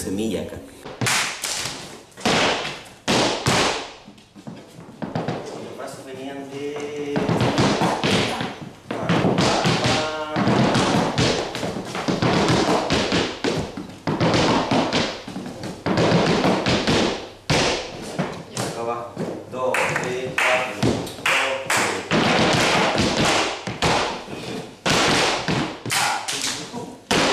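Shoes stamp rhythmically on a wooden floor.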